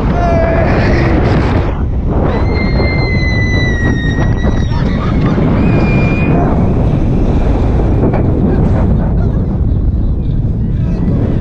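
Wind roars loudly past throughout.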